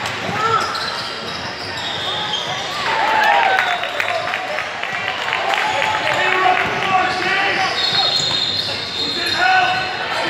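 A basketball thumps as it bounces on a hard floor.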